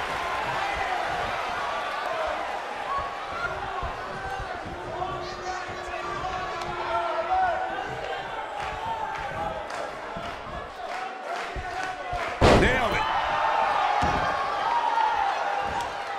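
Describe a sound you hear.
A large crowd cheers and shouts throughout in a big echoing arena.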